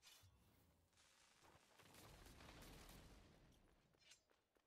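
A magic blast crackles and roars.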